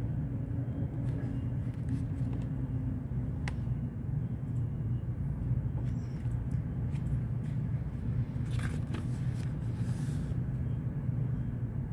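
Book pages rustle and flip close by.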